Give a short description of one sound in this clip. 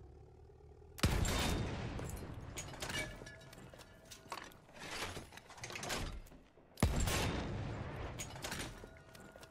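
An artillery gun fires with a loud boom that rolls away.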